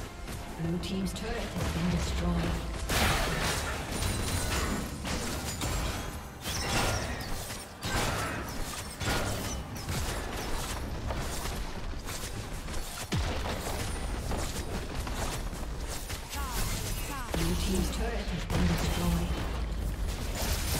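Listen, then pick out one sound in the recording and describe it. Game spell blasts and impacts crackle and whoosh.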